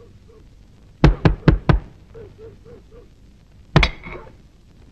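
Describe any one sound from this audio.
A stick strikes with sharp thwacks.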